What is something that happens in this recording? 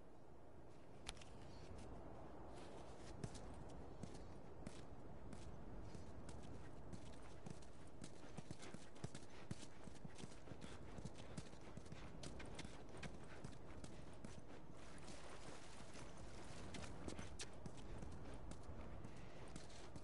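Footsteps scuff softly on hard ground.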